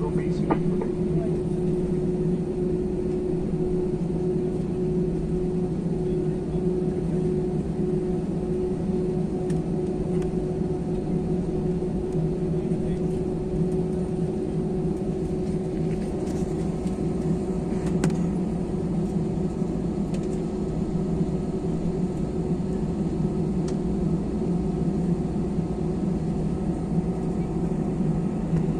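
Jet engines of an airliner hum, heard from inside the cabin while taxiing.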